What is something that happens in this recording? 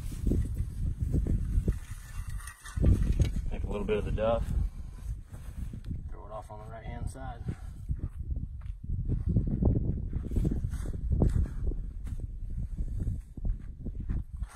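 A trowel scrapes and pats loose soil.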